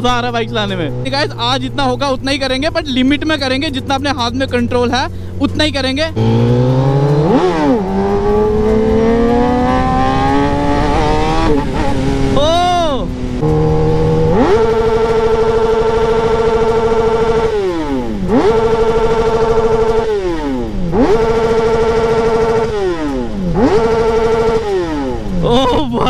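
A motorcycle engine roars loudly close by, rising in pitch as it speeds up.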